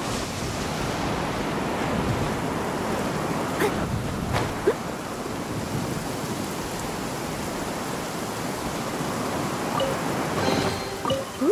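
Wind rushes and roars in a strong updraft.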